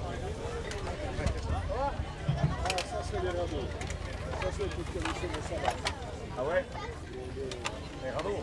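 Wooden cart wheels rumble and creak over the road.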